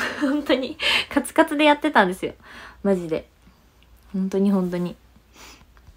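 A young woman talks excitedly close to a microphone.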